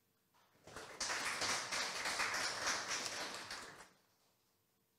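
An audience applauds loudly, then the clapping dies away.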